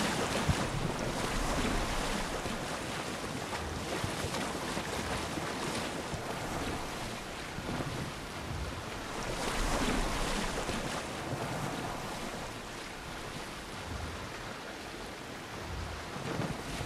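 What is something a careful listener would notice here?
Waves splash and rush against a wooden boat's hull.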